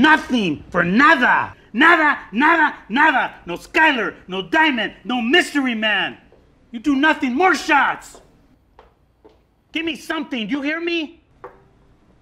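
A man speaks loudly and forcefully, close by.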